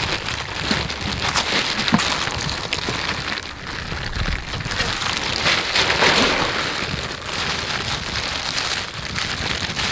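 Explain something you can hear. Plastic gloves crinkle and rustle up close.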